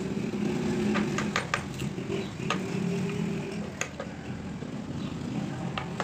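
A hammer strikes a metal chisel with sharp knocks.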